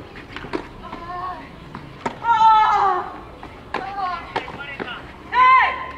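Tennis rackets strike a ball back and forth.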